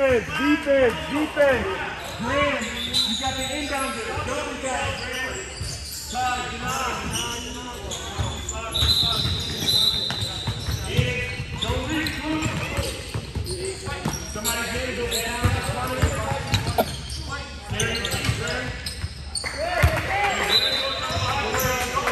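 Boys shout and call out to each other in a large echoing hall.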